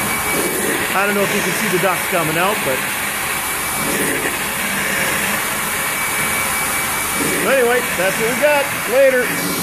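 A carpet cleaning machine hums and sucks steadily.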